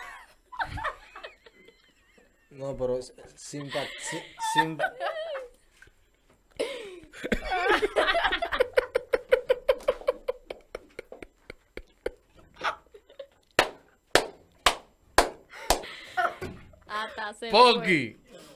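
A young woman laughs into a microphone.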